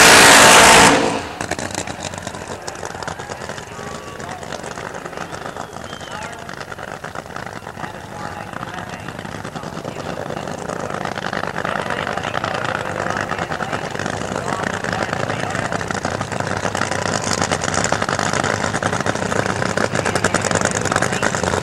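A drag racing car speeds away, its engine droning more faintly into the distance.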